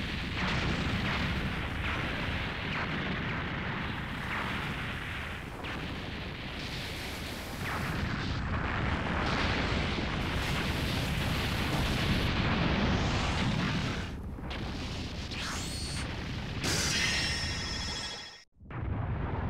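Huge energy beams roar and crash down with deep rumbling explosions.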